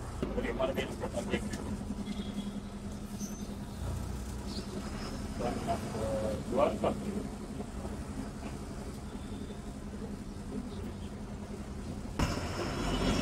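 A bus engine hums steadily from inside the cab.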